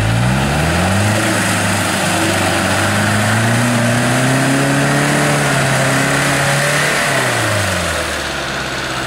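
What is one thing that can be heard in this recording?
An off-road buggy engine revs under load as it drives through deep water.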